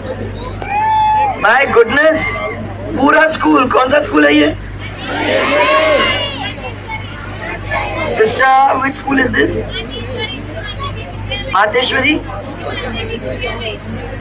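A woman speaks with animation through a microphone and loudspeakers outdoors.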